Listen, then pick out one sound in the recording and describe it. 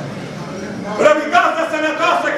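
A man sings out loudly close to a microphone.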